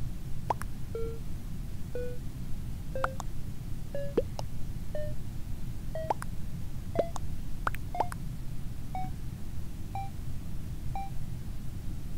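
Short electronic beeps count down, each one a little higher in pitch.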